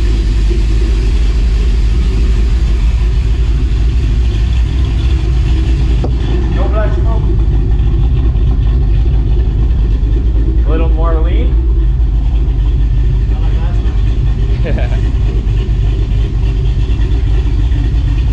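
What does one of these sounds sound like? A truck engine idles with a deep, steady rumble nearby.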